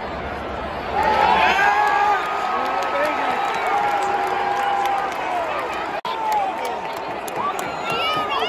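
A stadium crowd bursts into loud cheering and whooping.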